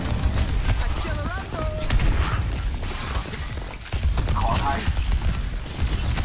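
A game weapon fires rapid energy blasts.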